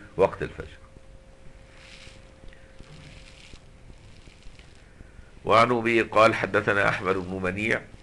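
An elderly man speaks calmly, lecturing, with long pauses.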